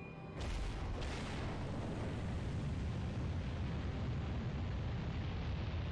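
Rocket engines ignite with a sudden burst and roar steadily.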